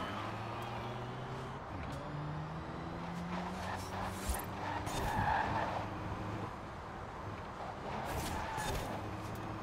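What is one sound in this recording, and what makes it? Tyres hum on a road.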